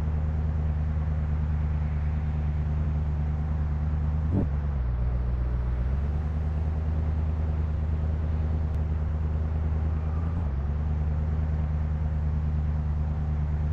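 A car engine idles with a low, steady rumble that briefly changes pitch.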